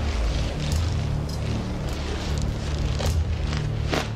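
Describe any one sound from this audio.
A metal chain rattles and clinks.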